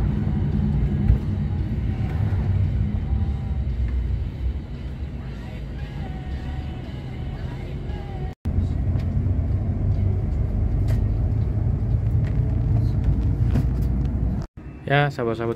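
A vehicle engine hums and rumbles steadily while driving.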